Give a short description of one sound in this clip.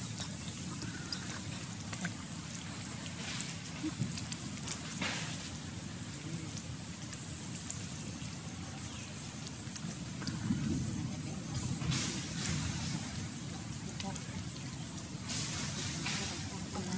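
Monkeys splash and wade through shallow water.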